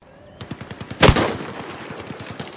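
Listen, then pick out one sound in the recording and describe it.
A rifle fires a single loud shot that echoes away.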